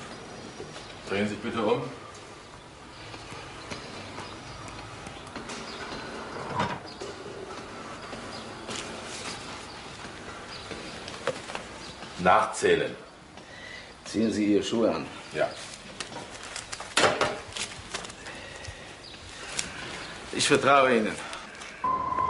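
A man speaks loudly and urgently nearby.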